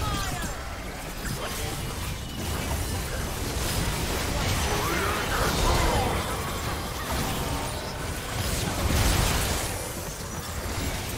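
Magic spells whoosh and blast rapidly.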